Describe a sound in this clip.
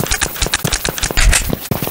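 A gun is reloaded with quick metallic clicks.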